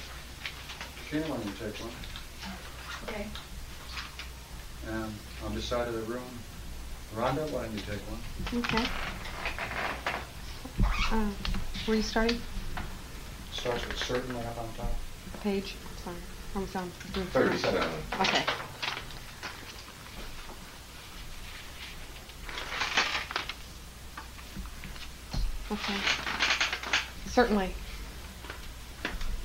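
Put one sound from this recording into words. An elderly man reads aloud calmly, close by, in a slow, measured voice.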